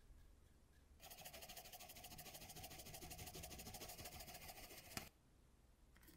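A brush swishes softly over a surface.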